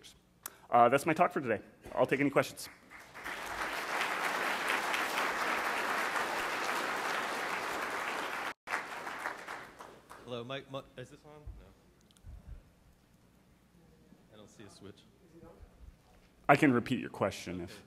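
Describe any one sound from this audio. A young man speaks calmly into a microphone in a large hall.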